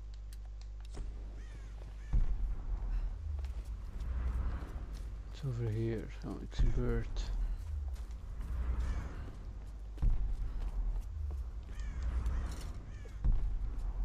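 Footsteps thud steadily on wood and stone.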